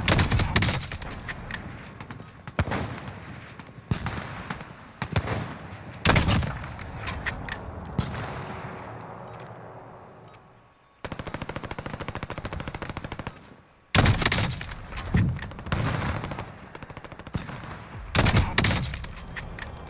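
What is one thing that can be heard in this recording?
A sniper rifle fires loud shots that echo and fade.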